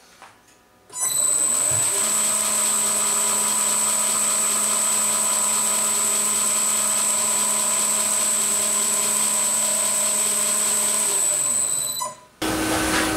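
A lathe spins with a steady, high whir.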